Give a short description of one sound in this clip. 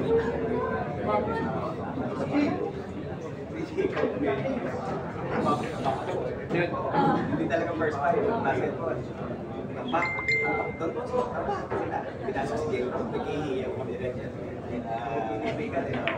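A crowd of people chatter and talk loudly.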